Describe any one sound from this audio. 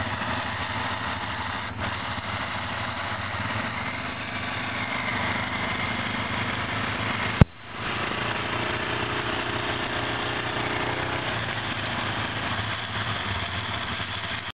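An all-terrain vehicle engine idles and revs nearby, outdoors.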